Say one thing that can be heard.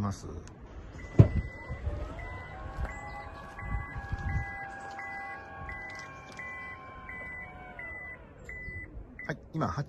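A power tailgate beeps repeatedly at a steady pace.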